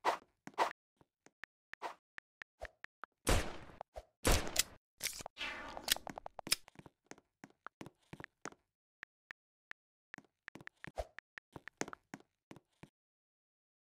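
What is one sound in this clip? Keyboard keys click softly as they are tapped.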